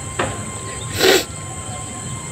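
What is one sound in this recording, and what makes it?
A man sniffs loudly.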